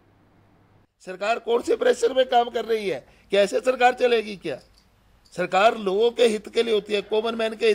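An older man speaks calmly and steadily into a microphone, with short pauses.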